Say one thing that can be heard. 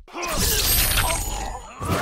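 A blade slices through flesh with a wet spray.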